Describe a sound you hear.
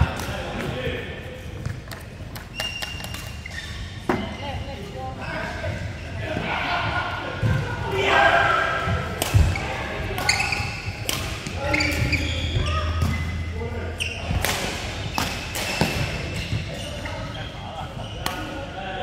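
Rackets strike shuttlecocks with sharp pops in a large echoing hall.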